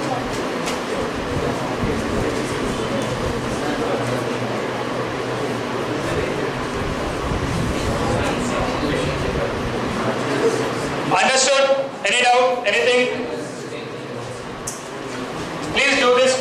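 A man lectures calmly into a headset microphone.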